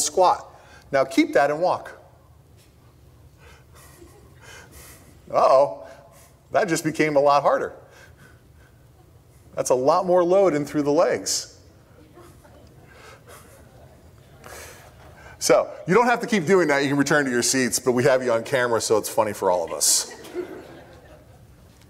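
A middle-aged man speaks through a microphone with animation, pausing between phrases.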